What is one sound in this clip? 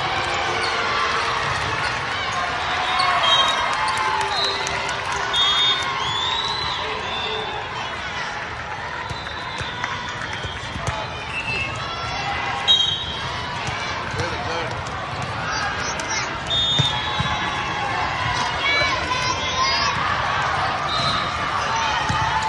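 A crowd chatters and cheers throughout a large echoing hall.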